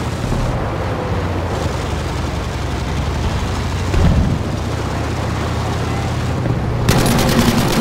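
Water splashes and rushes against a hull.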